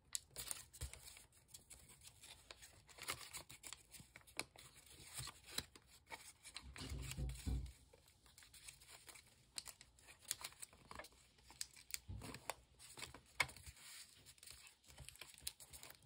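Paper crinkles and rustles as it is folded and creased by hand.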